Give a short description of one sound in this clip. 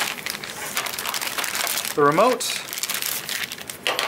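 Plastic wrapping crinkles and rustles as it is pulled open.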